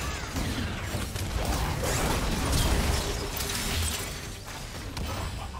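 Spell effects whoosh and crackle in a video game battle.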